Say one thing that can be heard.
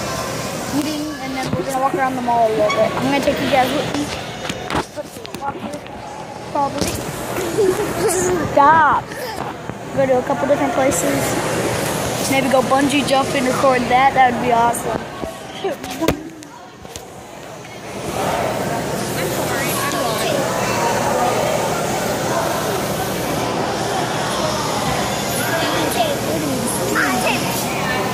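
A crowd murmurs in the background of a large echoing hall.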